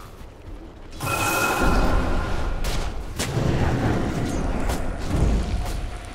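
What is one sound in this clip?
Fire spells blast and crackle.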